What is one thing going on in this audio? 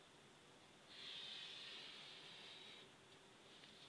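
A marker pen squeaks and scratches along paper.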